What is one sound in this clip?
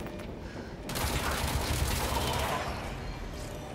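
A loud explosion roars.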